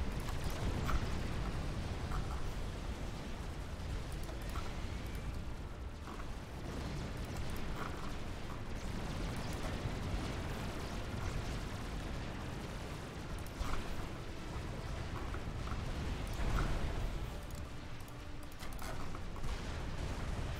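Gunfire and explosions rumble and crackle in a battle.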